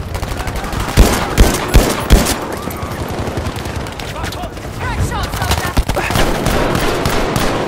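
Gunshots fire in quick, sharp bursts.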